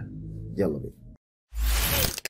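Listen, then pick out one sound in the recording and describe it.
A young man speaks calmly, close to the microphone.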